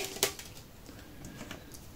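Plastic sheeting crinkles under a hand.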